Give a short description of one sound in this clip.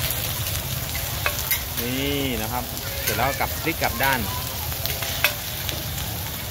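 Eggs sizzle steadily on a hot griddle.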